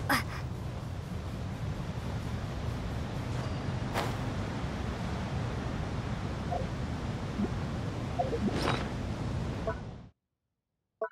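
Wind rushes steadily past, as if in flight.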